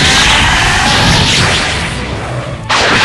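An energy blast roars and crackles.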